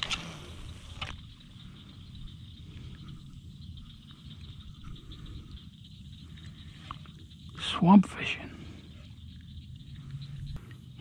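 Wind blusters against the microphone outdoors on open water.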